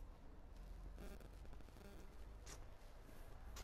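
Footsteps walk on paving stones outdoors.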